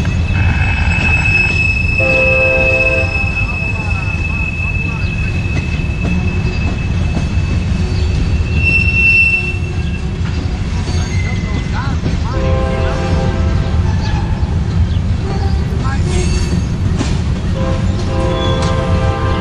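A freight train rumbles steadily past on the tracks.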